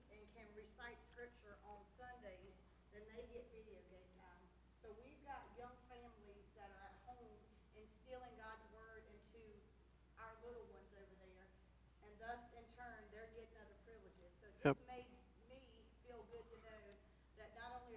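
A man speaks calmly to an audience through a microphone in a large echoing hall.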